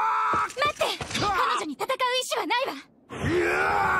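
A young woman speaks pleadingly.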